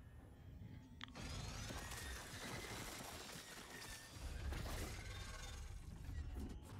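A mechanism whirs and clicks as it turns.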